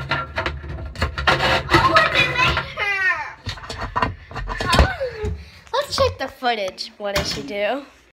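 A young girl talks excitedly and laughs close to the microphone.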